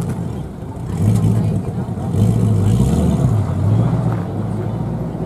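A sports car engine revs loudly several times.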